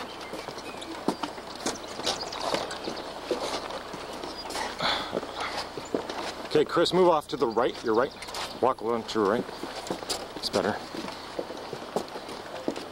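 Footsteps thud on a wooden suspension bridge.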